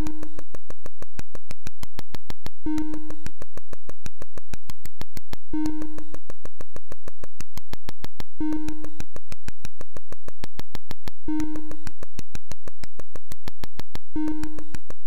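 Fast electronic ticks from a retro video game click steadily.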